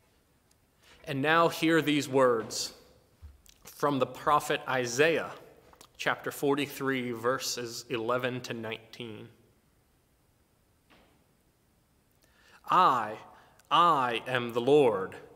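A middle-aged man speaks calmly and warmly, close to the microphone.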